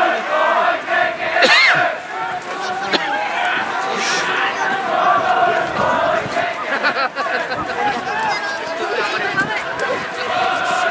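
Young women players shout and call to each other outdoors.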